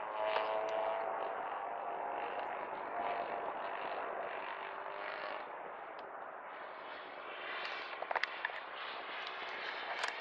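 A model airplane engine buzzes overhead, rising and falling in pitch as it flies.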